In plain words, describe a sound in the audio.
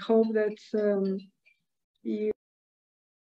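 An older woman speaks calmly over an online call.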